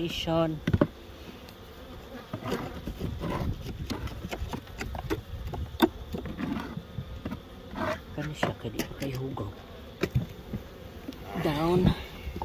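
Wooden hive boxes knock and scrape as they are handled.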